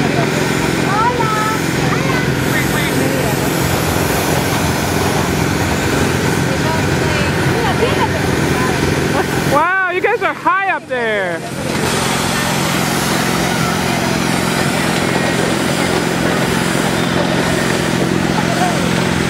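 A fairground ride whirs and hums steadily as it spins.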